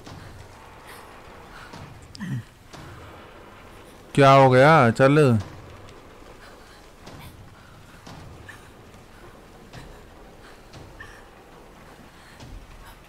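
Hands and feet knock softly on a metal ladder during a climb.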